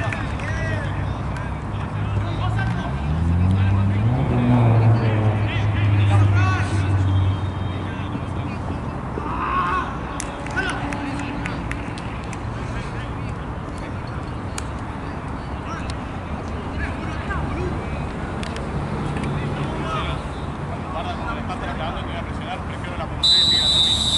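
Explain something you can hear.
Young men shout and call out to each other at a distance outdoors.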